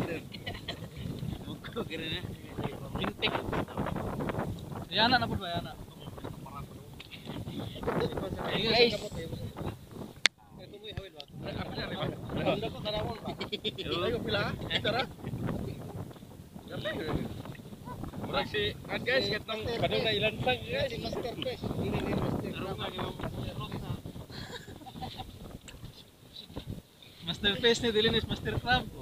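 Men talk casually close by.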